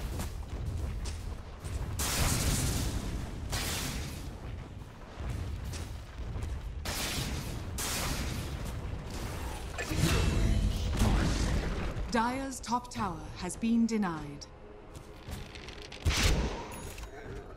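Magical blasts crackle and boom.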